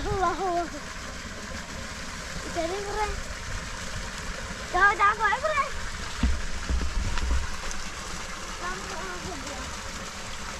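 A young girl speaks nearby.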